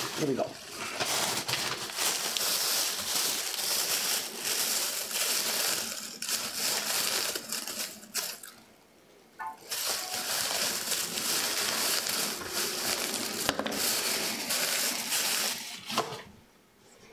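Plastic packaging rustles and crinkles close by.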